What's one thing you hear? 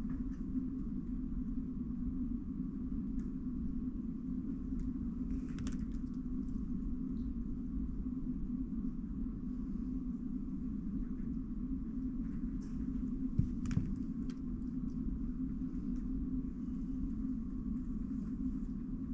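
Plastic puzzle cube pieces click and clack as they are turned quickly by hand.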